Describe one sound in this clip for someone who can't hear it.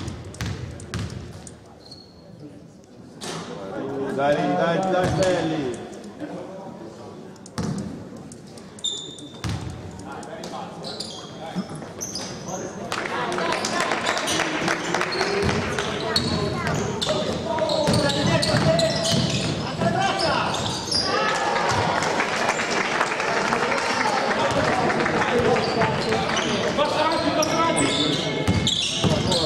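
Sneakers squeak on a hardwood floor in an echoing gym.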